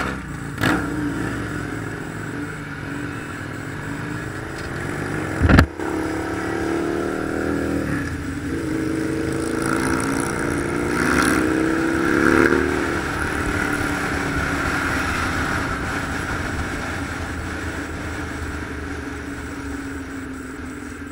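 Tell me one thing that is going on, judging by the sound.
A motorcycle engine roars close by, revving up and down.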